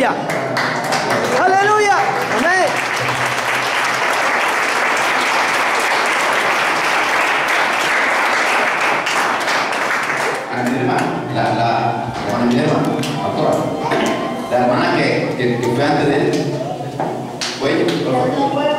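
A middle-aged man speaks with animation into a microphone over a loudspeaker.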